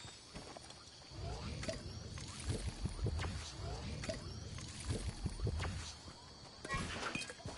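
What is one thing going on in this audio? Footsteps crunch over rocky ground in a video game.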